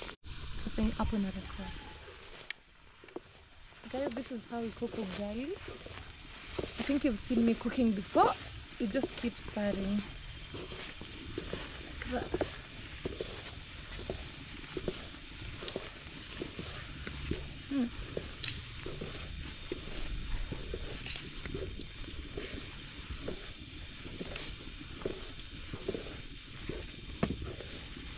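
A wooden stick stirs thick porridge in a metal pot, scraping and thudding.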